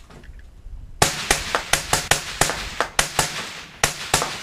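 Rifles fire rapid, sharp shots outdoors, each crack echoing briefly.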